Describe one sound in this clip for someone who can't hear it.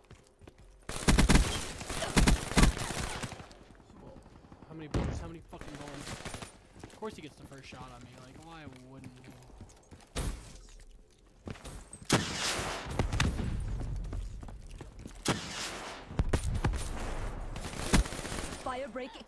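Gunshots crack in quick bursts from a video game.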